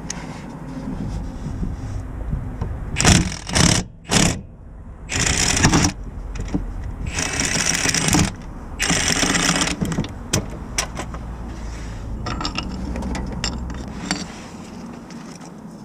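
A ratchet wrench clicks and rattles against metal close by.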